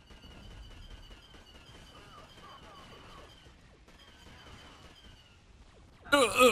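Laser blasters fire in rapid, repeated bursts.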